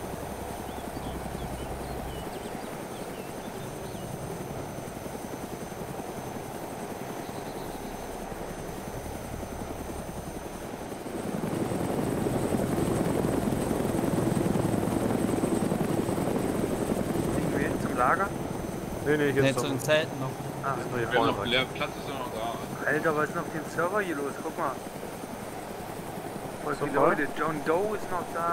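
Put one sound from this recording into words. A helicopter's rotor thumps and its engine drones steadily.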